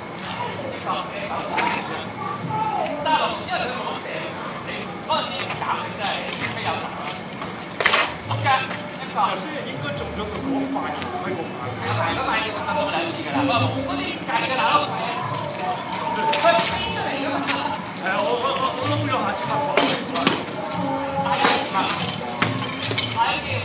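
Men shout and call out nearby outdoors.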